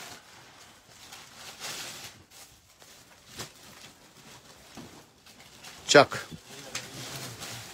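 Paper rustles against cloth.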